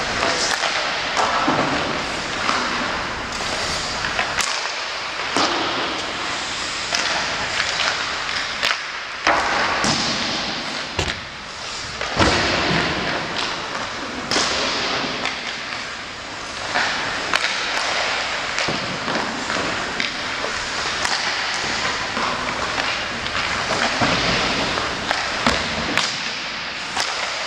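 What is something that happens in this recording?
Ice hockey skates scrape and carve on ice in a large echoing arena.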